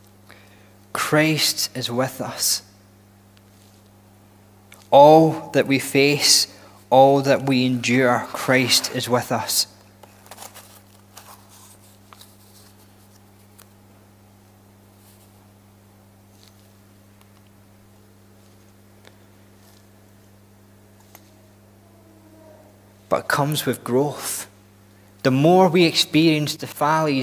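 A man speaks calmly into a microphone, in bursts with long pauses.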